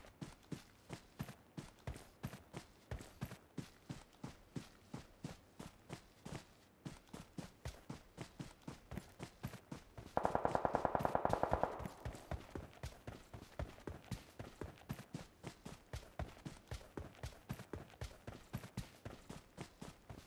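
Footsteps thud quickly and evenly on the ground.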